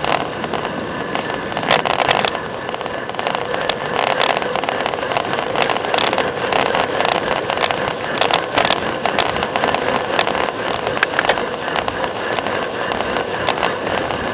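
Wind rushes and buffets loudly past a moving bicycle.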